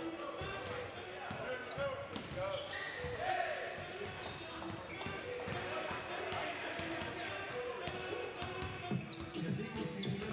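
Basketballs bounce on a hard court in a large echoing gym.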